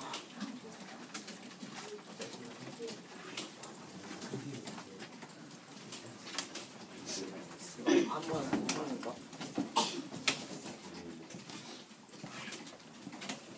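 Young students murmur and chatter nearby in a room.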